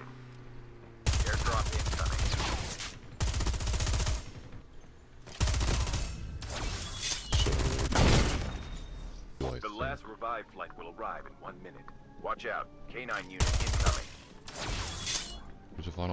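Bursts of rapid gunfire ring out loudly.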